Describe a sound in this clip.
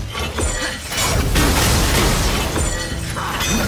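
Metal clangs and sparks crackle as a blade strikes a shield.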